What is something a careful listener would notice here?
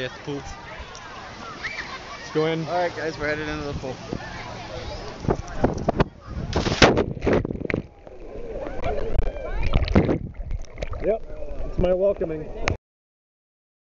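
Children and adults shout and chatter around a pool outdoors.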